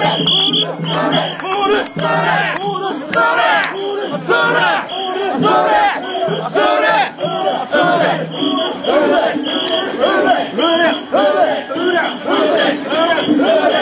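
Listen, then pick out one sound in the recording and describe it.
A crowd of people sings loudly together close by.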